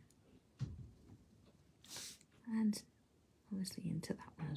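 A felt-tip marker squeaks softly across paper.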